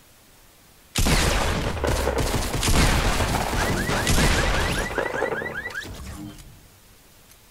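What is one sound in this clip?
Rapid gunshots ring out loud and close.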